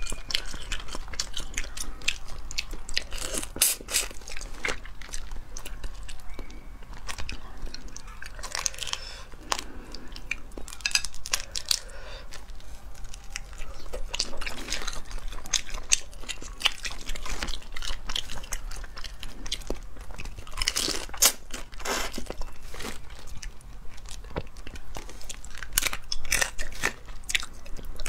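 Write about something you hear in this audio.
Shrimp shells crack and crunch close to a microphone.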